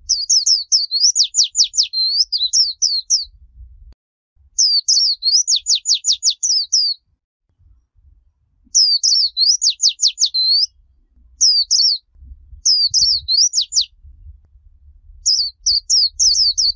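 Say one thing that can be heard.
A small bird sings loud, fast chirping and trilling phrases in short bursts.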